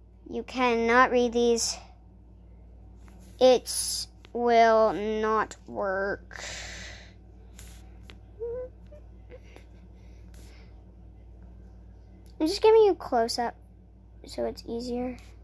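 Small plastic toy pieces click softly as they are handled.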